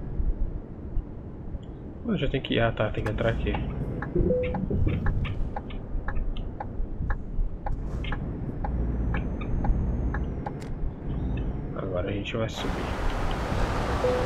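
A truck engine rumbles steadily as the truck drives along a road.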